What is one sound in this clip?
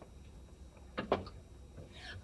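A heavy wooden door thuds open.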